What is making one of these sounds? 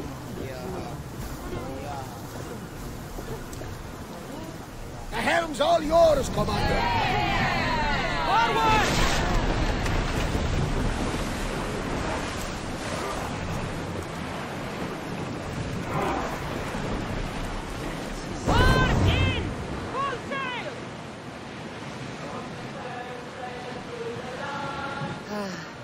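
Water rushes and splashes against a sailing ship's hull.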